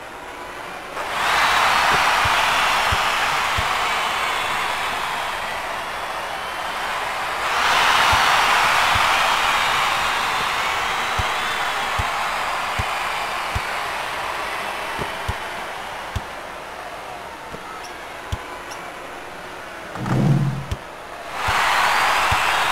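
A large crowd roars and cheers in a big arena.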